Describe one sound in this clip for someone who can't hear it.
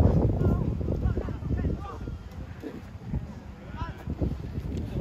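Players shout to each other from a distance.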